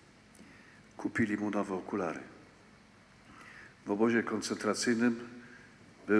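An elderly man speaks slowly and solemnly into a microphone, with a slight echo of a large hall.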